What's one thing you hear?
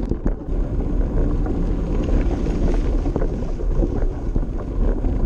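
Bicycle tyres rumble and crunch over a rough dirt track.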